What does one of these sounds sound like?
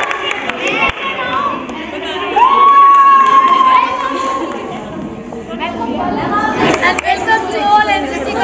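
A crowd of young women chatter and cheer loudly in an echoing hall.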